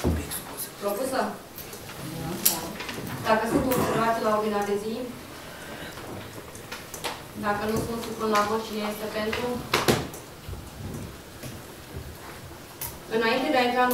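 A man speaks calmly into a microphone in a room with a slight echo.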